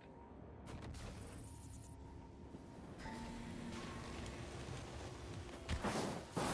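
A gun fires globs with soft bursts.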